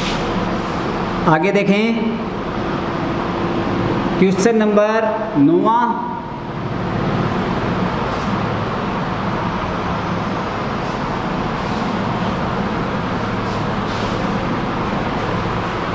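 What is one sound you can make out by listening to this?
A cloth rubs and squeaks across a whiteboard.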